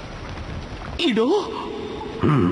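A man asks a short question in surprise.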